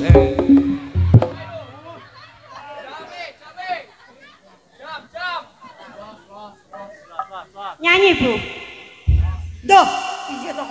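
Gongs and drums strike with deep booming beats.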